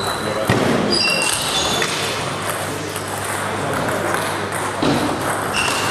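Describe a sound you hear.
A table tennis ball clicks sharply against paddles and the table in an echoing hall.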